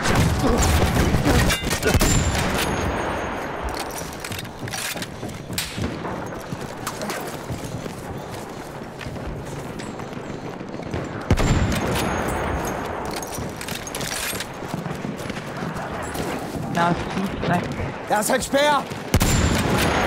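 Rifle shots crack in quick bursts.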